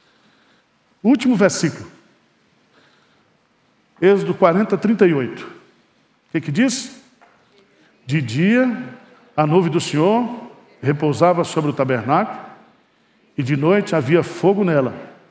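An older man speaks calmly through a microphone in a reverberant hall.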